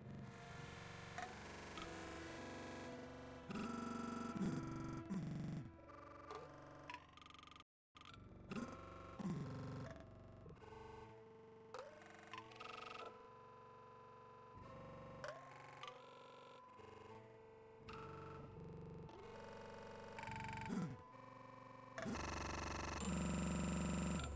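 Coins chime as they are collected.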